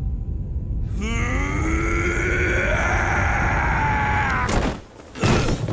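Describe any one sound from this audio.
A man roars with strain.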